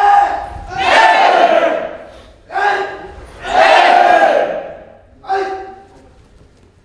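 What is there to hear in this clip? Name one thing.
A young man shouts loudly in rhythm, echoing in a large hall.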